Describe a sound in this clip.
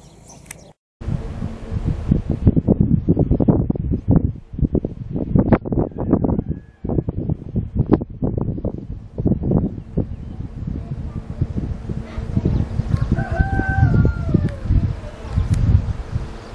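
Strong wind roars and buffets in gusts outdoors.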